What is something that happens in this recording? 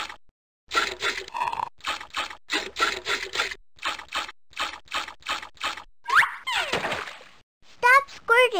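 Soda sprays and splashes in quick repeated bursts.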